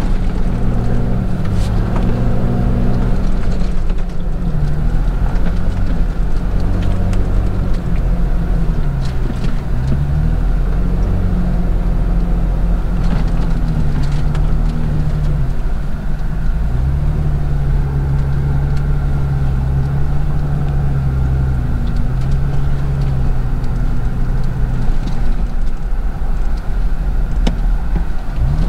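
Tyres rumble over sand.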